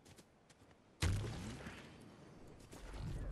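A loud whoosh and thud sound as a game character lands.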